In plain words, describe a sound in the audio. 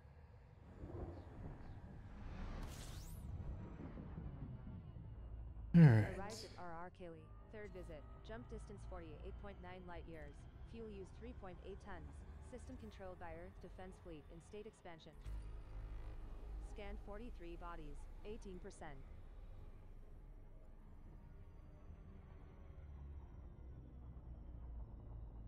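A spaceship's engines rumble low and steady.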